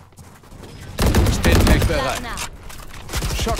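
A rifle fires in quick bursts of sharp shots.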